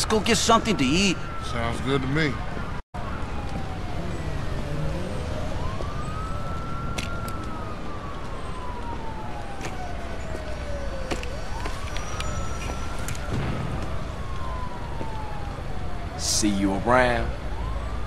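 A siren wails nearby, slowly rising and falling.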